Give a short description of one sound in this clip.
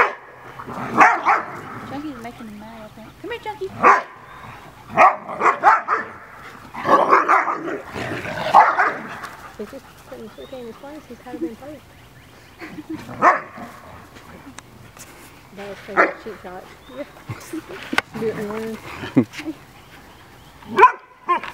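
Several dogs bark in short, sharp bursts nearby.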